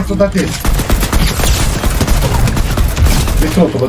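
A gun fires repeated sharp shots.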